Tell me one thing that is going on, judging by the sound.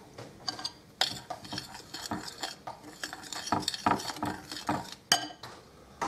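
A fork stirs flour in a glass bowl, scraping and clinking against the glass.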